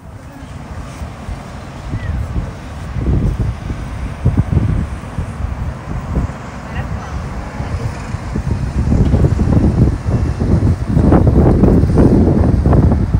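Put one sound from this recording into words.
Wind gusts over the microphone outdoors.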